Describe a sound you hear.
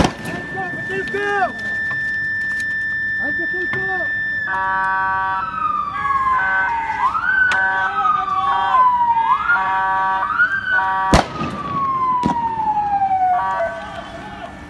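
A vehicle siren wails, rising and falling.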